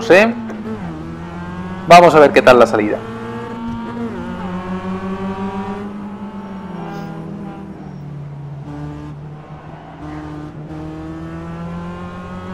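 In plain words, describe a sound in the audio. Race car engines drone steadily, shifting pitch as the cars speed up and slow down.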